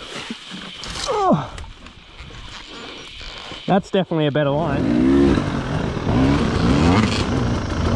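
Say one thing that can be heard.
A dirt bike engine revs hard, rising and falling in pitch.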